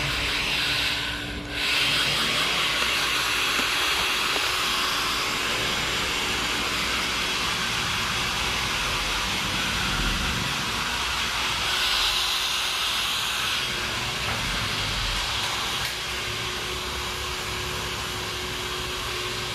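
A hair dryer blows with a steady close roar.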